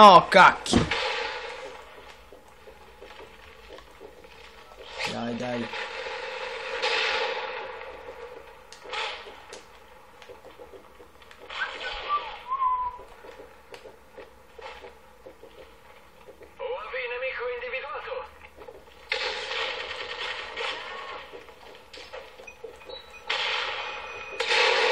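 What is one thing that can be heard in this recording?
Gunshots from a video game crackle through a small loudspeaker.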